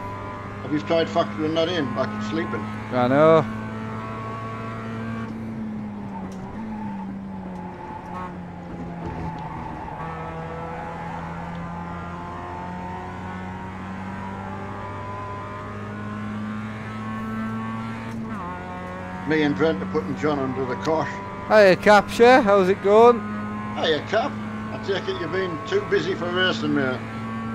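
A racing car engine drones steadily and shifts in pitch.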